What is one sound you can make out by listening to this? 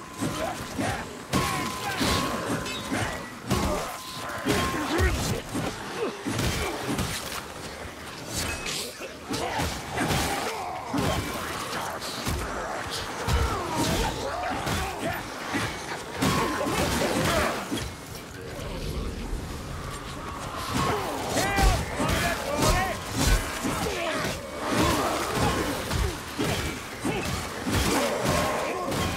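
Weapons strike and thud against attacking creatures.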